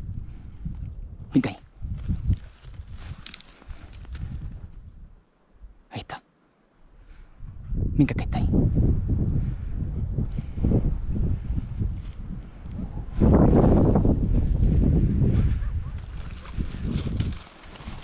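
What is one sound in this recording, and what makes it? Wind gusts across the microphone outdoors.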